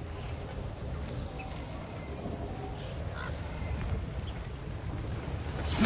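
Heavy footsteps thud on wooden planks and rocky ground.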